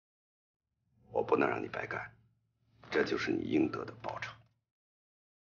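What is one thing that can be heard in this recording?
A middle-aged man speaks calmly up close.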